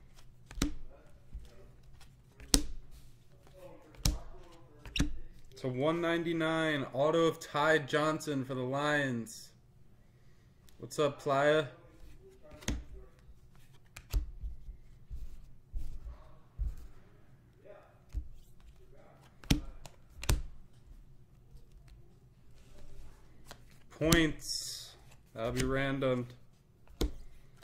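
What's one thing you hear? Trading cards flick and snap as hands sort through them.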